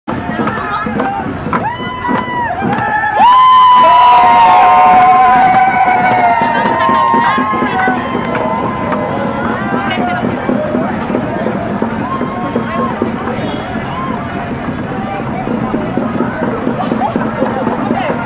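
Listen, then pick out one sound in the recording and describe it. A crowd of adults and children chatters nearby outdoors.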